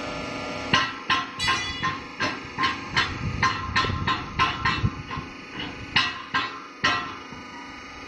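A machine rattles and bangs in quick repeated knocks.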